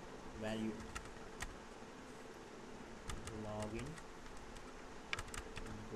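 Keys on a keyboard click as someone types in short bursts.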